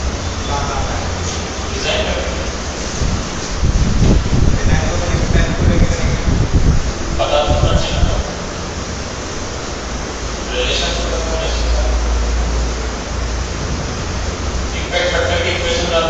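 A man lectures calmly into a nearby microphone.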